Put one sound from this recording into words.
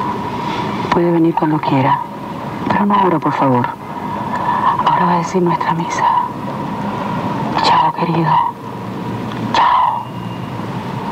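A woman speaks calmly into a phone, close by.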